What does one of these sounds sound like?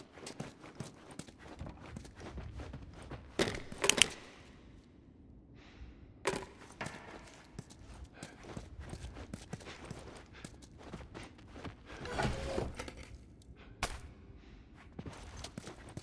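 Footsteps walk steadily on a hard floor.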